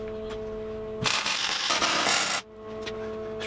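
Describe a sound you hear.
An electric welding arc crackles and hisses loudly.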